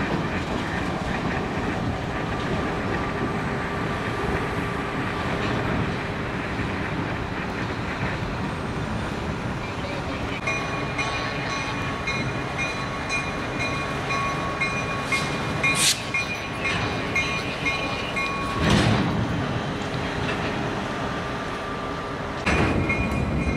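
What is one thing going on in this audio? A diesel locomotive engine hums steadily.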